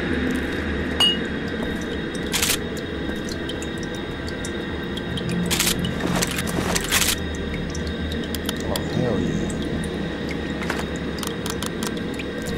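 Metal clicks and clacks as a gun is picked up and handled.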